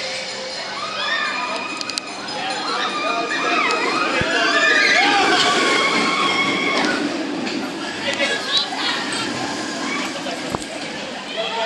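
A roller coaster train roars and rattles along its steel track.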